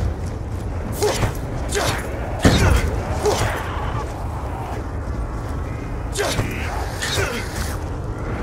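A heavy knife slashes with sharp thuds.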